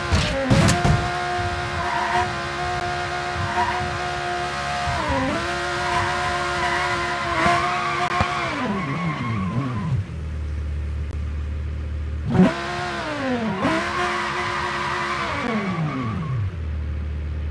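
A car engine revs up and winds down several times.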